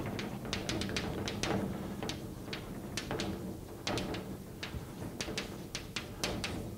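Chalk taps and scrapes on a blackboard in quick strokes.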